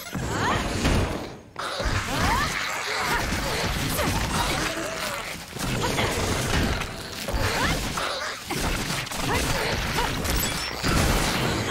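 Magic blasts and sword hits crash and whoosh in a fast fight.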